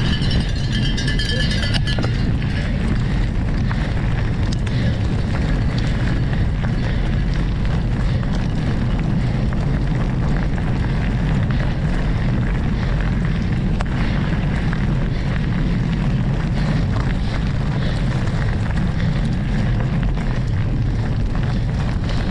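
Wind buffets loudly across the microphone outdoors.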